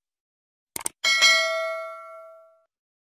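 A small bell chimes and rings out slowly.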